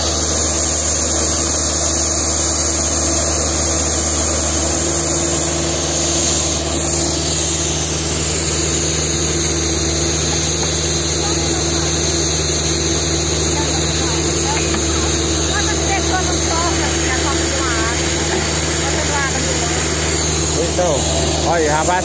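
A drilling rig engine drones steadily close by.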